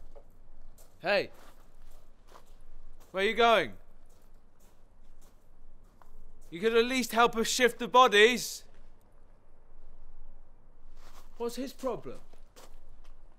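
A young man calls out loudly in short bursts.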